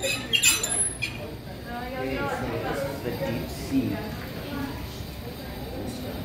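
A young man talks nearby in a large echoing room.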